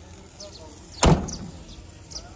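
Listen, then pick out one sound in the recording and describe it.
A vehicle door slams shut with a sharp metallic bang.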